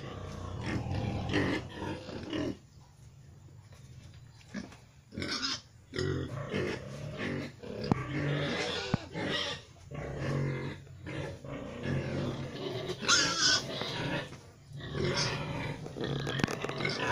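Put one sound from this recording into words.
A pig grunts and snorts close by.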